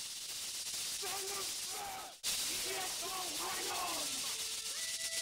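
A group of young men chant and sing together.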